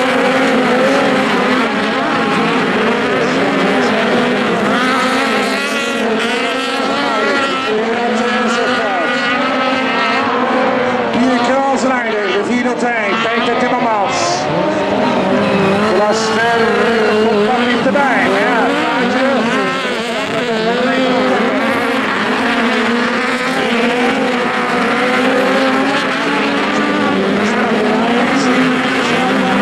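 Racing car engines roar and rev on a dirt track.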